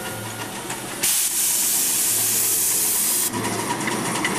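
Steam hisses loudly from a small locomotive's chimney.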